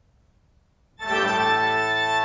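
A pipe organ plays a loud, full chord that rings through a large echoing hall.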